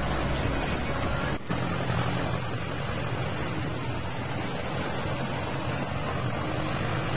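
A harvester rattles and clatters as it works through soil.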